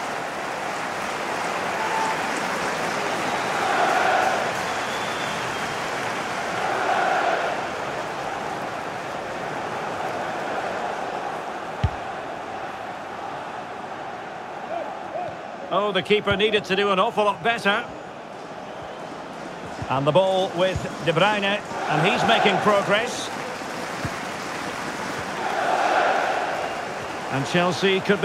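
A stadium crowd roars steadily, swelling now and then.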